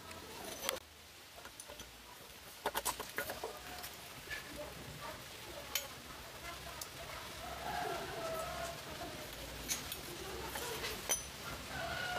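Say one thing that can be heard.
A metal wrench clicks and clinks against a wheel bolt.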